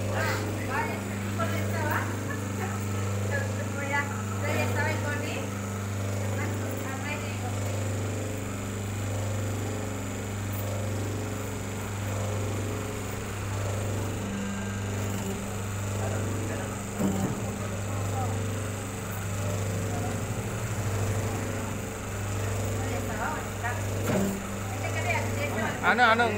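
Several women talk with animation close by.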